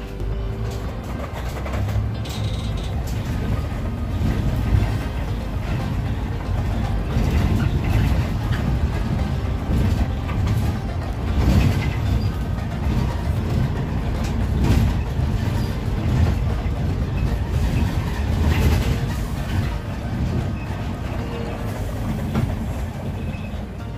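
The bus body rattles and knocks over bumps in the road.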